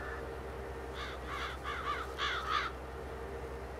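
Birds chirp in short bursts.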